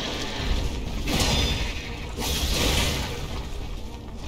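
A huge creature strikes with a heavy crash.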